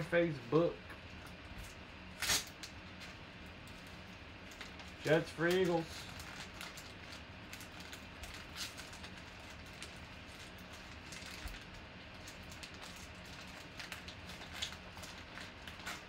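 A foil wrapper crinkles and tears as hands pull it open.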